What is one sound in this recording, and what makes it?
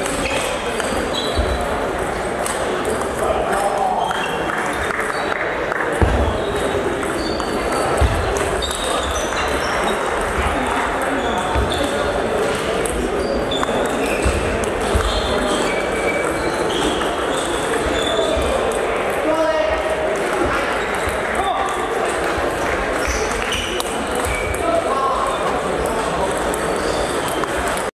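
A crowd of spectators chatters in the background.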